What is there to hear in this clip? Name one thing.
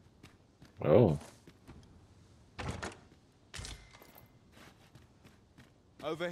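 Footsteps tread softly on wooden boards.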